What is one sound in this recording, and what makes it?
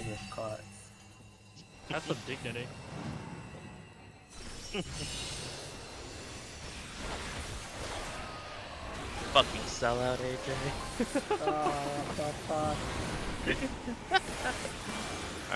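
Magic spell effects whoosh and chime in bursts.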